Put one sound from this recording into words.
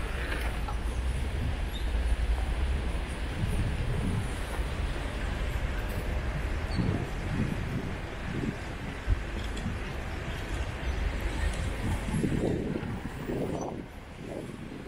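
Wind rumbles across the microphone.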